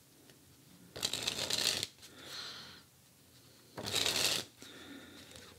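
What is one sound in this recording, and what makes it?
Playing cards riffle quickly as they are shuffled.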